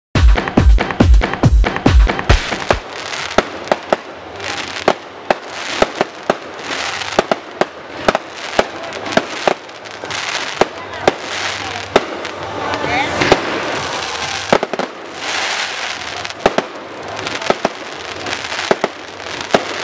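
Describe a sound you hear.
Fireworks bang and pop in rapid bursts.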